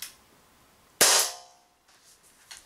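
An air pistol fires a single sharp shot indoors.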